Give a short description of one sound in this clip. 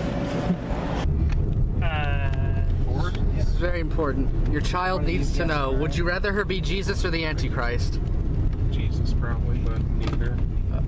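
A car engine hums and tyres rumble on the road.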